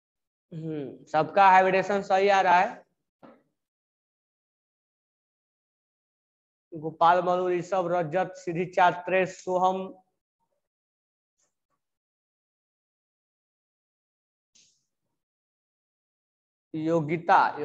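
A man speaks calmly and explains, close to the microphone.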